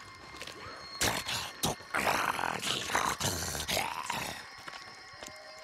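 A knife stabs into a body with heavy thuds.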